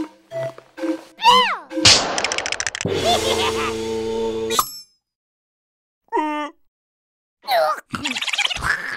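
A squeaky, high cartoon voice babbles and squeals excitedly.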